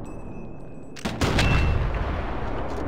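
A rifle shot booms loudly and echoes away.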